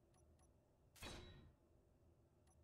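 A short, bright whooshing effect sounds as a block finishes building, then quickly fades.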